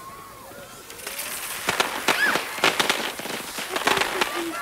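A firework fizzes, crackles and pops loudly.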